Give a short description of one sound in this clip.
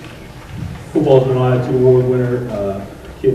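A man speaks into a microphone over a loudspeaker in a large hall.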